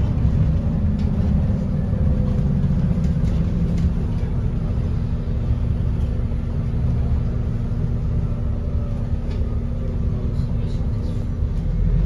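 The bus interior rattles and clatters lightly.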